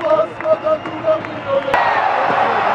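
A large crowd chants in rhythm in a big echoing arena.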